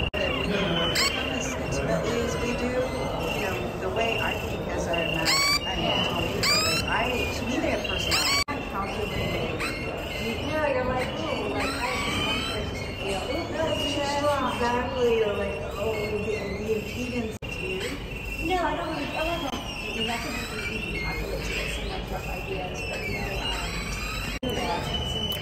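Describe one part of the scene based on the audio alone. Electronic birds chirp and tweet in quick bursts.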